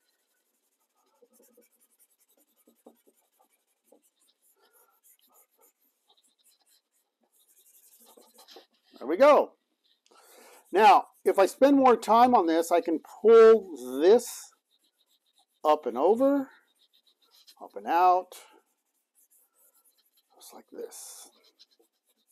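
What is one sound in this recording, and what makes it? Charcoal scratches softly on paper.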